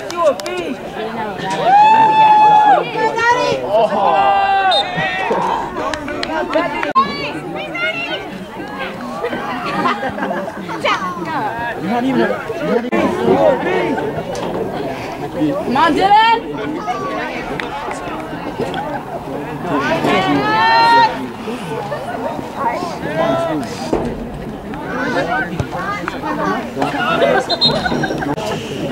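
Nearby spectators shout and call out outdoors.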